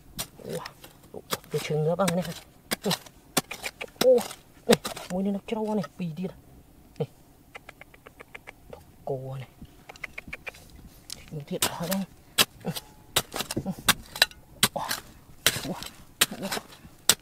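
A small hand tool scrapes and digs into dry, stony soil.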